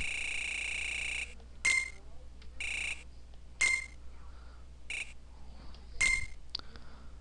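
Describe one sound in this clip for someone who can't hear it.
Short electronic beeps chirp in quick bursts.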